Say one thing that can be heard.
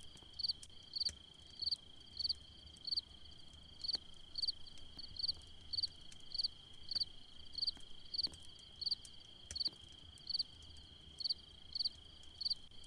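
Footsteps tap at a quick, steady pace.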